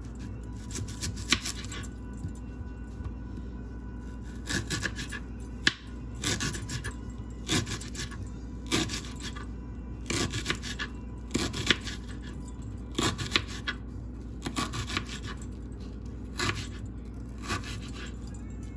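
A kitchen knife taps on a plastic cutting board.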